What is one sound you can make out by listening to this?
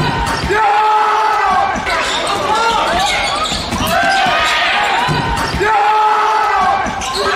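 A handball thuds and bounces on the hall floor.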